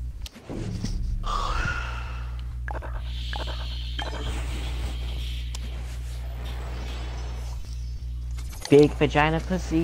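A card game's sound effects whoosh as cards are played.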